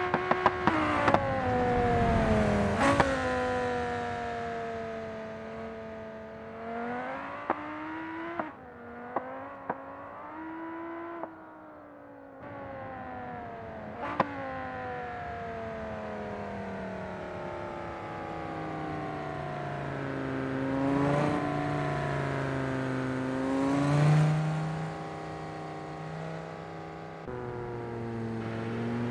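A sports car engine revs and drones, rising and falling in pitch.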